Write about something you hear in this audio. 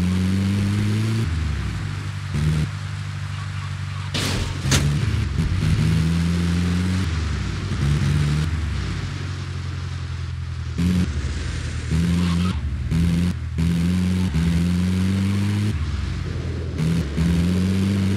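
A van engine revs and drops as it drives over rough ground.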